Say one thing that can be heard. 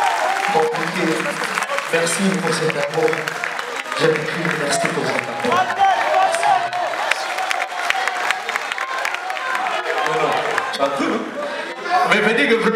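A man sings into a microphone over a live band.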